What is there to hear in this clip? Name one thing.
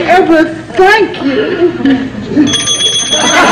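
A middle-aged woman speaks with emotion, close by.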